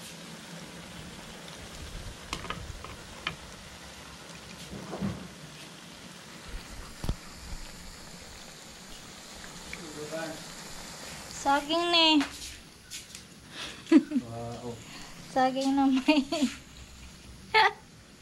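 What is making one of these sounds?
Oil sizzles steadily in a frying pan.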